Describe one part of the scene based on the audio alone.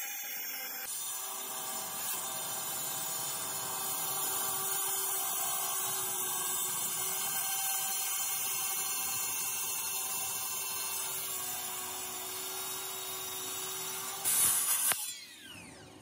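A power saw whines steadily as it grinds through concrete.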